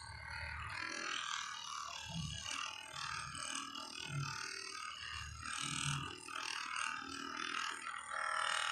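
A massage gun buzzes steadily against a person's back.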